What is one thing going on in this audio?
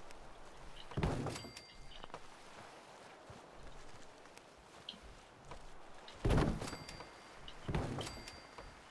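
A wooden wall panel thuds heavily into place.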